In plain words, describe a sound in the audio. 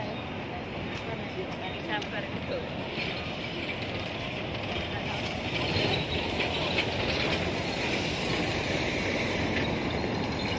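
Busy street noise murmurs steadily outdoors.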